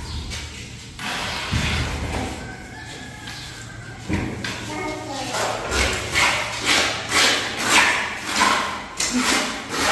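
Wet mortar squelches and scrapes under a hand in quick rhythmic strokes.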